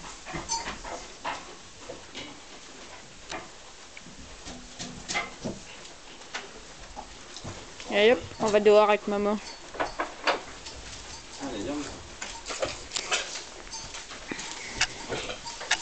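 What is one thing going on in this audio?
A weanling horse's hooves shuffle on straw bedding.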